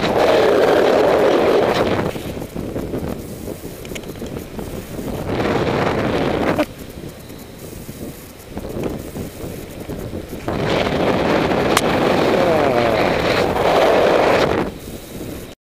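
Wind roars across a microphone in gusts.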